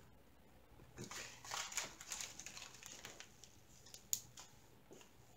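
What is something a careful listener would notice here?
A plastic bag crinkles softly.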